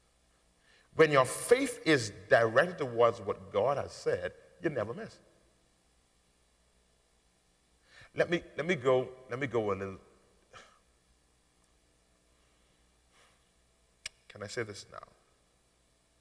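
A man preaches with animation through a microphone, speaking in bursts with pauses.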